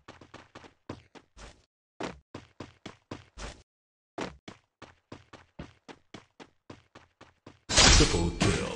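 Quick footsteps tap up metal stairs.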